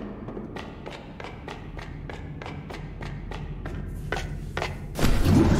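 Quick light footsteps patter on a hard floor.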